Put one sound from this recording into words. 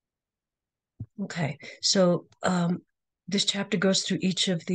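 An older woman speaks calmly through a microphone.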